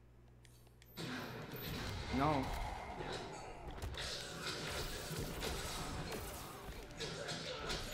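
Fighting game blows and blasts crash and boom loudly.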